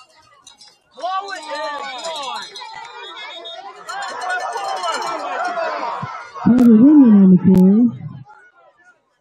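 A large crowd cheers and shouts loudly after a play.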